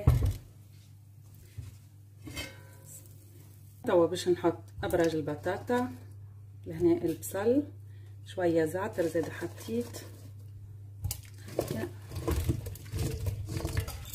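Potato pieces splash and thud into a pot of sauce.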